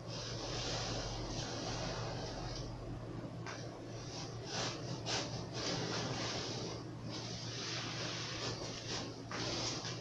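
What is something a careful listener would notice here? A knife saws through thick foam with a rough, rasping hiss.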